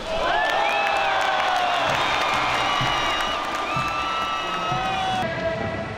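Players clap their hands.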